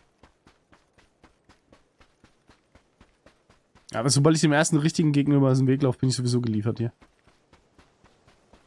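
Quick footsteps crunch steadily on sand.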